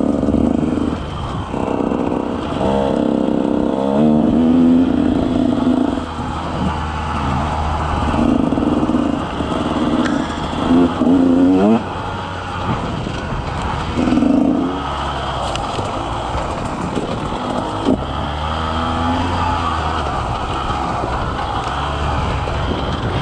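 Bicycle tyres crunch and rattle over a gravel and dirt trail.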